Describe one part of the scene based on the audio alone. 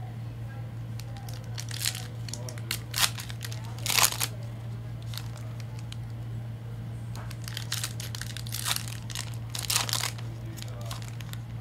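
Foil card packs crinkle and rustle as hands handle them.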